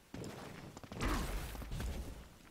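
A video game fireball whooshes through the air.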